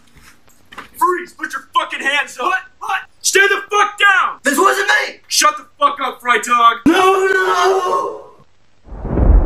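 A young man speaks tensely close by.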